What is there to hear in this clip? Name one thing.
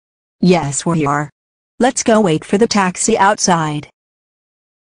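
A woman's synthetic computer voice speaks in short phrases.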